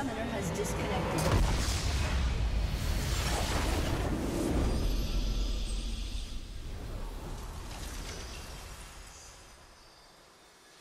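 A triumphant orchestral fanfare swells loudly and then fades.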